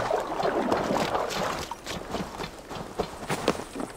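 Footsteps rustle through wet grass.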